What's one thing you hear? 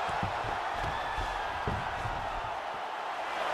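Heavy punches thud against a body.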